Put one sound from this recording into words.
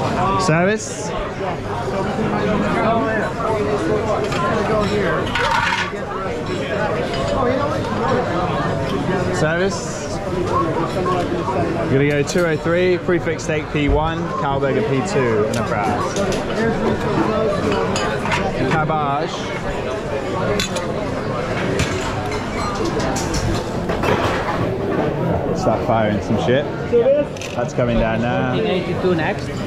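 A crowd of diners chatters steadily in a busy room.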